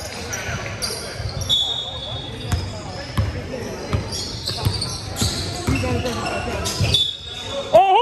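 A basketball bounces on a hard floor in a large echoing gym.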